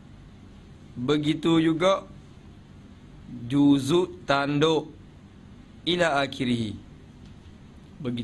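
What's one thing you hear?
A man speaks calmly into a microphone in short phrases with pauses.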